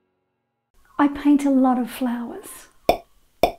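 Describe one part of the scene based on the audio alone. A woman speaks cheerfully and close to a microphone.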